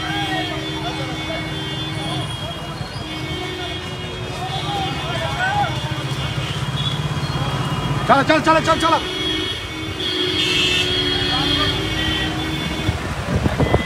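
A crowd of men talks and calls out nearby.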